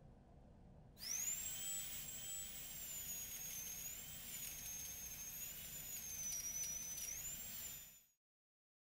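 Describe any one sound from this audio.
A small rotary tool whines at high speed as it grinds stone.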